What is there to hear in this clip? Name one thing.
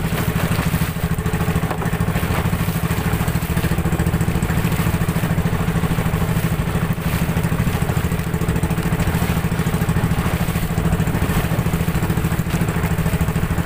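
A boat engine chugs loudly and steadily.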